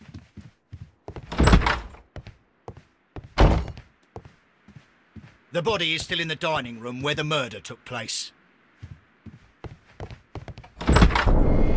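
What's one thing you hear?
A heavy wooden door swings open.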